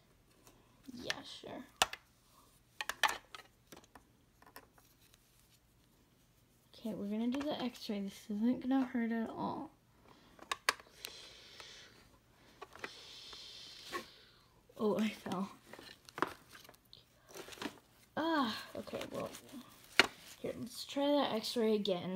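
Plastic toy pieces click and tap together.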